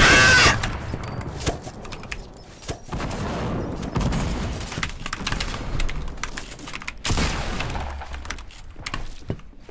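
Rapid clicks and thuds clatter as structures are built.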